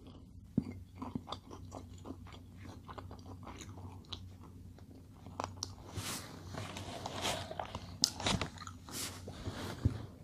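Paper wrapping crinkles and rustles as it is handled.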